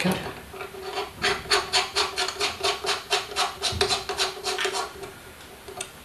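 A metal knob clicks rapidly as it is turned by hand.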